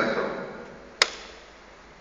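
A small machine lid clicks shut.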